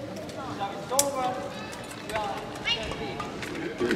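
A racket strikes a shuttlecock with a sharp smack.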